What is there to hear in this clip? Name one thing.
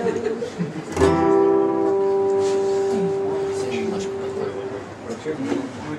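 An acoustic guitar chord is strummed and rings out.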